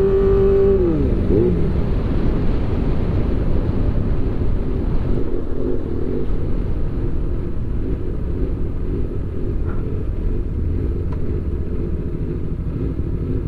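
A motorcycle engine revs high, then drops in pitch.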